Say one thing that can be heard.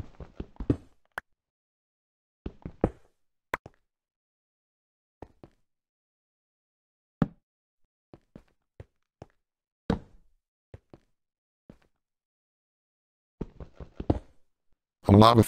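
A pickaxe chips at stone blocks with short dry knocks.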